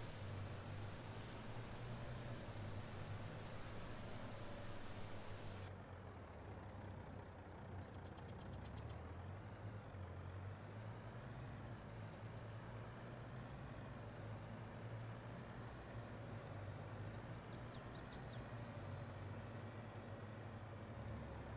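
A heavy truck engine rumbles steadily as it drives along.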